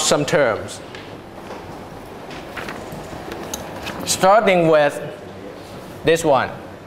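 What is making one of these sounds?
A young man speaks in short, lively bursts.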